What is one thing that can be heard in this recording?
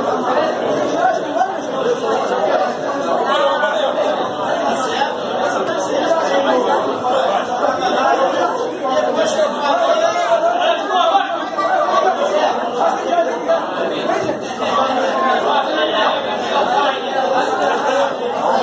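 A crowd of men chatters and talks loudly indoors.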